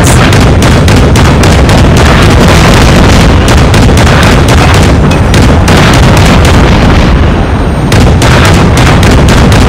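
Twin rotary machine guns fire in rapid bursts.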